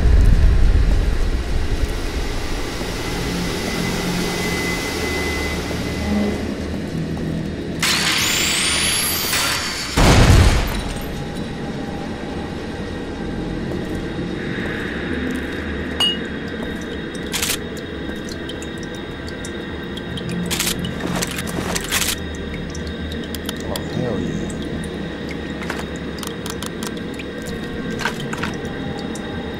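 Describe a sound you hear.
Footsteps scuff across a hard floor.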